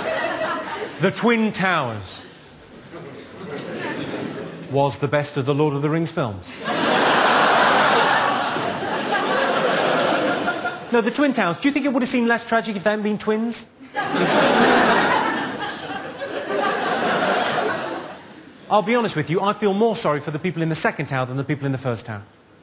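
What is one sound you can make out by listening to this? A man speaks with animation into a microphone to an audience.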